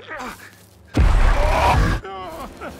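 A man screams loudly.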